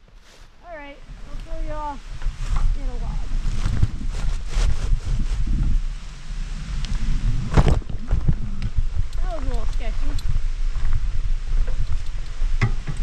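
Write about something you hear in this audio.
Tyres rumble over a bumpy dirt trail.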